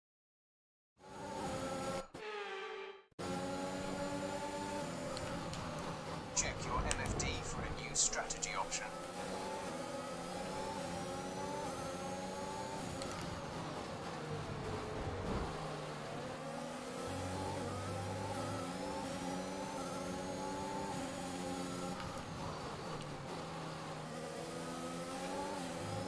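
A racing car engine screams at high revs, rising and dropping in pitch as it shifts gears.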